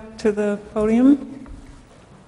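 A middle-aged woman speaks briefly into a microphone.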